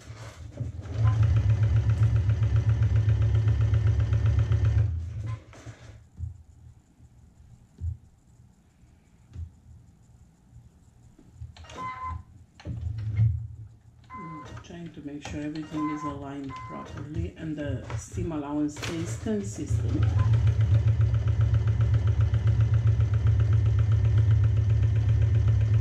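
A sewing machine stitches rapidly with a steady, fast whirring hum.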